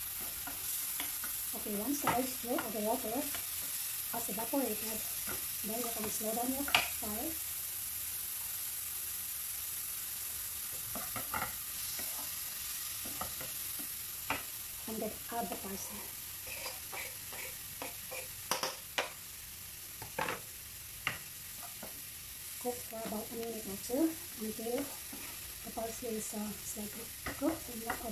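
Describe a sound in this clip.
A wooden spoon scrapes and knocks in a frying pan.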